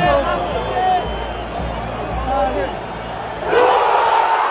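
A large stadium crowd murmurs and shouts tensely.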